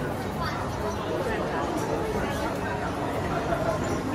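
People chatter in a busy indoor crowd.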